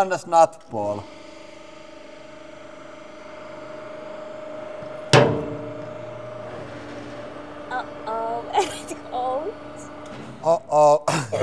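A hydraulic press hums steadily as it presses down.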